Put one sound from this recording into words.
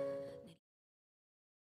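A song ends abruptly.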